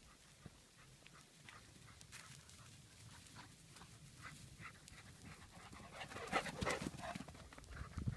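Dogs run through dry grass, rustling it.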